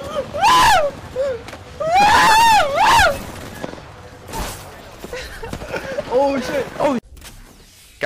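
A young man shouts excitedly into a close microphone.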